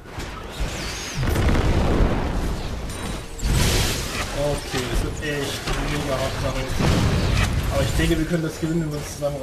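Magic blasts and weapon hits crackle and thud in a fast, busy fight.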